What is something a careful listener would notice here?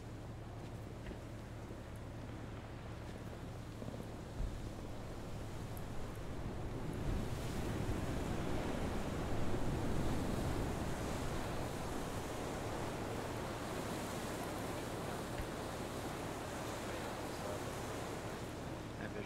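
A man talks into a close microphone.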